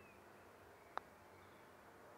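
A putter taps a golf ball with a light click.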